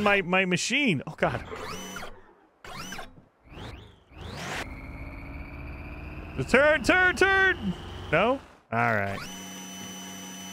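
A small robotic rover's motor whirs and hums as it drives.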